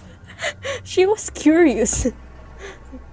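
A young woman laughs loudly close to a microphone.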